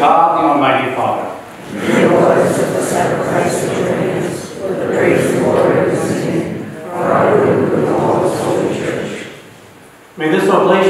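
A middle-aged man chants prayers aloud in an echoing room.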